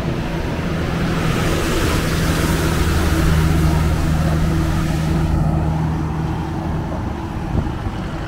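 A heavy truck rumbles past close by with a loud engine drone.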